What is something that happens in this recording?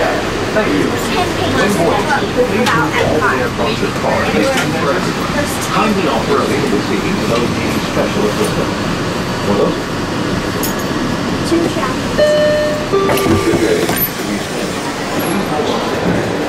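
A train rumbles steadily as it rolls along a track.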